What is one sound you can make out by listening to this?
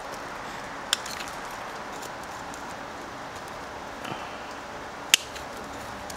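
Pruning shears snip sharply through a twig.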